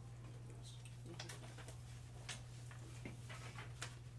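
Papers rustle as they are handled.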